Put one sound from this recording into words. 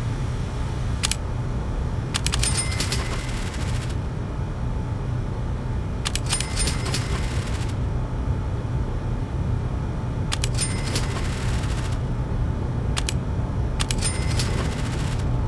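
Menu buttons click, followed by short bright chimes.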